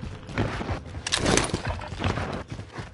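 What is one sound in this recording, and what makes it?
A revolver clicks and rattles as it is reloaded.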